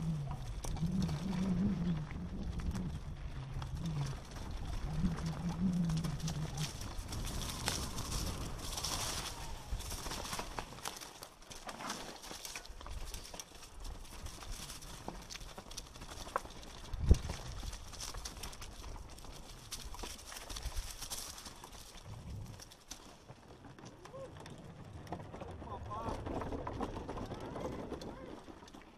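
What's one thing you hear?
Tyres crunch over loose rocks and gravel.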